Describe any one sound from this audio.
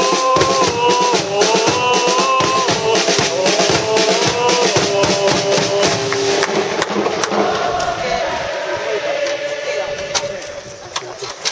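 A large stadium crowd sings a chant loudly, then trails off.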